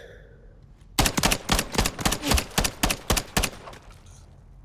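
A submachine gun fires a rapid burst of shots.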